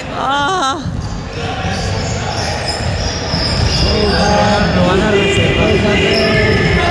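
Spectators and players shout and call out in the echoing gym.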